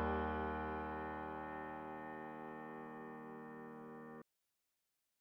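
A keyboard chord rings out and slowly fades.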